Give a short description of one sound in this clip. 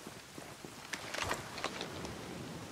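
A suppressed rifle fires a sharp shot.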